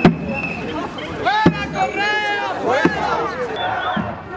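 A woman chants loudly outdoors among a crowd.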